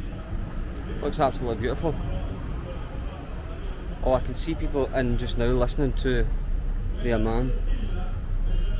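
A young man talks calmly close to a microphone.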